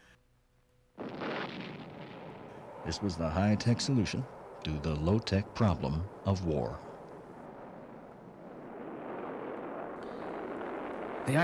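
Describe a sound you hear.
A rocket engine roars in a steady rumble.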